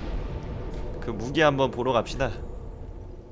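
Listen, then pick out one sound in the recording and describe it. A young man speaks loudly and with animation into a close microphone.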